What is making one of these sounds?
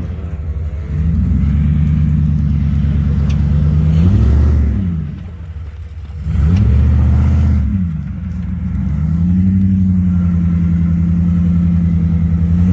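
A V8 pickup truck revs while climbing a dirt track.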